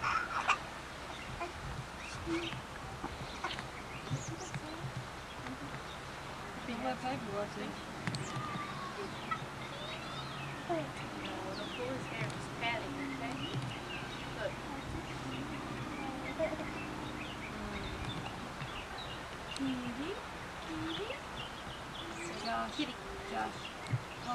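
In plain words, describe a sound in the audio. Young women talk casually nearby outdoors.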